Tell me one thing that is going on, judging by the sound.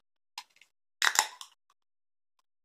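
A can pops open with a hiss.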